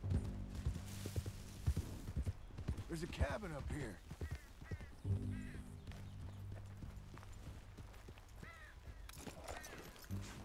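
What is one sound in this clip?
A horse's hooves thud on a dirt path.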